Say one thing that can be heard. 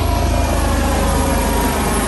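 A helicopter whirs overhead.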